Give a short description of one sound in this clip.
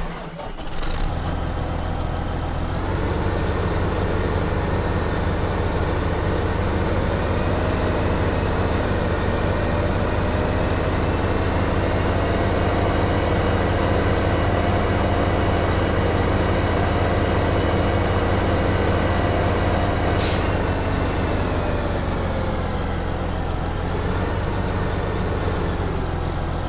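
A tractor engine hums steadily as it drives along.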